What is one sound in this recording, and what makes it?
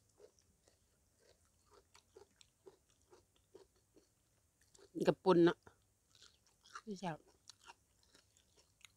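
A woman chews food wetly and smacks her lips close to a microphone.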